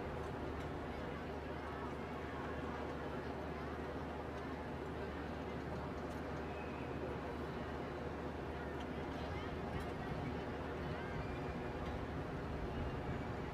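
A large crowd murmurs outdoors in an open square.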